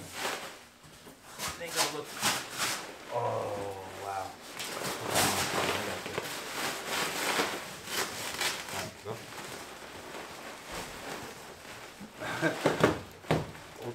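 A seat bumps and scrapes against a metal car frame.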